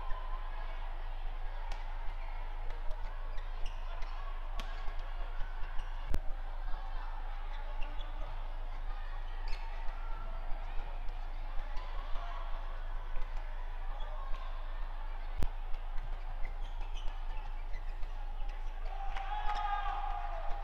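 Players' shoes squeak on an indoor court floor.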